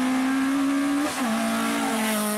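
A rally car engine drops sharply in pitch at a gear shift.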